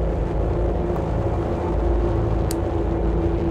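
A short electronic menu blip sounds.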